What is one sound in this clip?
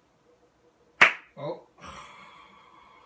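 A man claps his hands together sharply.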